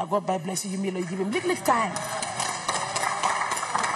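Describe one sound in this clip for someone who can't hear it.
A woman speaks firmly into a microphone in a large echoing hall.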